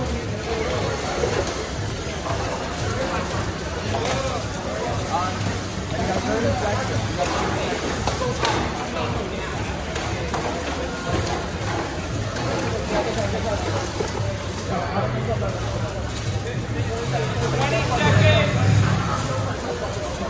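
Small robot motors whir and hum as robots drive around.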